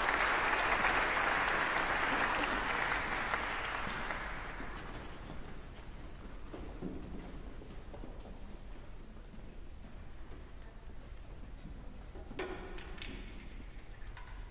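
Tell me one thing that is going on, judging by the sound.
Footsteps shuffle on risers as a choir walks off.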